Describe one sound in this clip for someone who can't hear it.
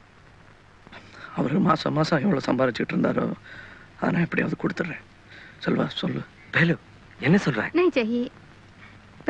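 A second man speaks up with animation.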